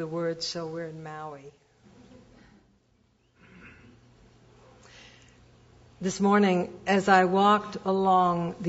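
A middle-aged woman speaks calmly and clearly into a microphone.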